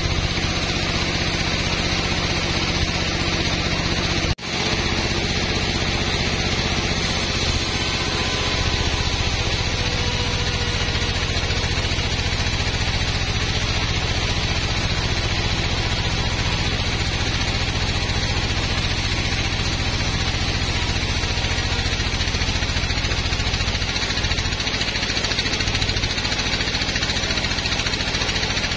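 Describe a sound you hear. A large band saw hums and cuts lengthwise through a teak log.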